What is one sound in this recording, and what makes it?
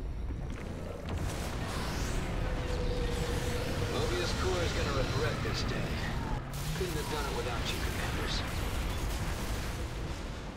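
Big explosions boom and rumble.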